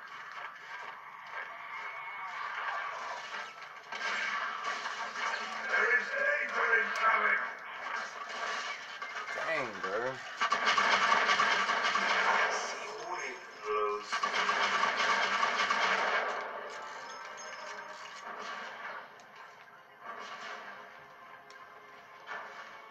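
Video game combat sounds play through a television speaker.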